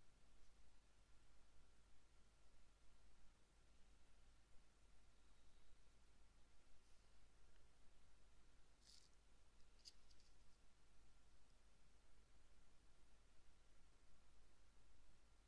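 Fingers softly rustle a small piece of fabric up close.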